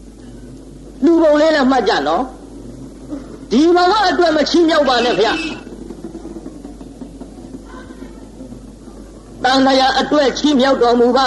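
A man chants slowly in drawn-out phrases.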